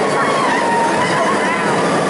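A roller coaster rushes and rumbles past overhead.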